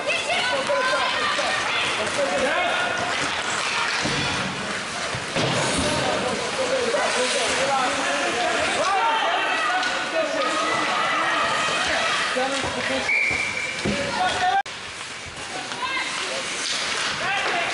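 Spectators call out and cheer in an echoing rink.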